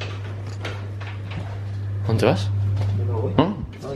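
A door latch clicks open.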